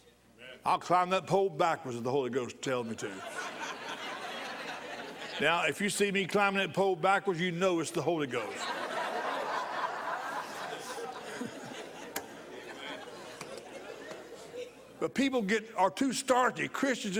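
A middle-aged man speaks with animation into a microphone in a large hall.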